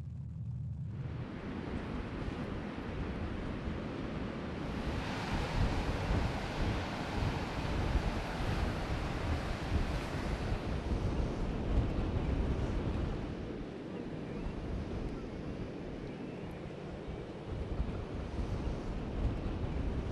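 Wind blows hard through grass outdoors.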